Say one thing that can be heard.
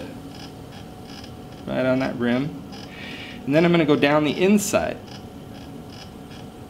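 A potter's wheel spins with a low, steady hum.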